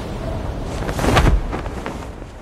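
A parachute snaps open with a sudden whoosh.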